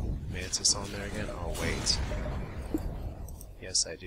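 A spaceship explodes with a deep rumbling boom.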